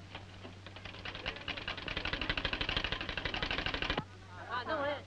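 A sewing machine whirs steadily.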